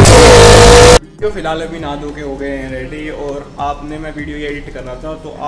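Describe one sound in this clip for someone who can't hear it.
A young man talks with animation close up.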